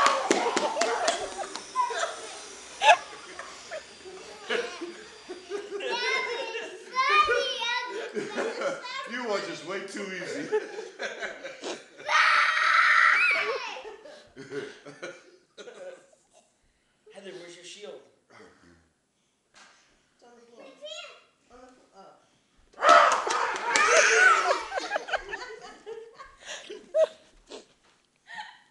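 Adults laugh loudly together in a room.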